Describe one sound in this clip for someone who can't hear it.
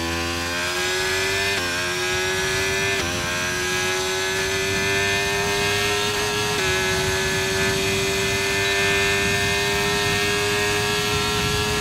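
A racing car engine screams at high revs, rising in pitch and dropping briefly with each gear change.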